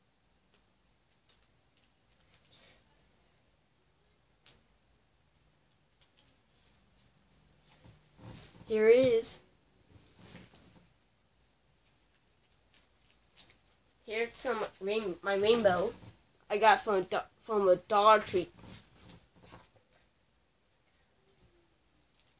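Card sleeves rustle and crinkle in a boy's hands.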